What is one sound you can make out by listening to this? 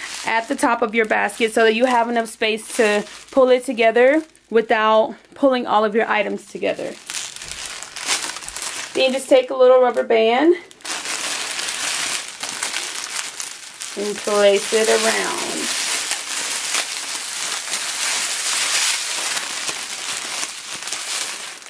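Clear plastic wrap crinkles and rustles up close.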